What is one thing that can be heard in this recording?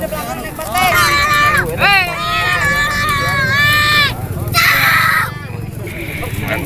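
A crowd of men and boys shouts and cheers outdoors.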